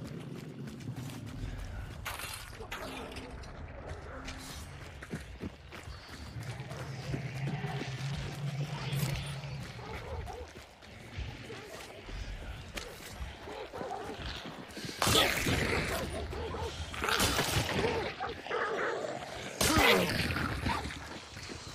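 Footsteps tread over dirt and gravel.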